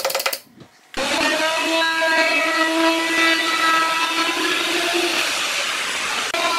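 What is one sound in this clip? An electric router whines loudly as it cuts wood.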